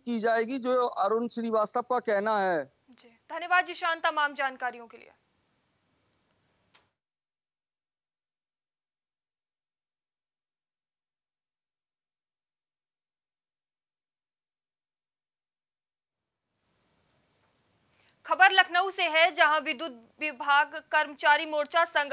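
A young woman reads out the news in a calm, clear voice through a microphone.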